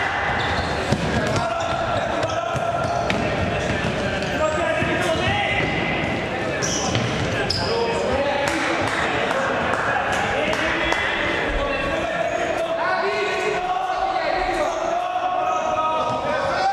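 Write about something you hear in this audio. Sneakers squeak sharply on a hall floor.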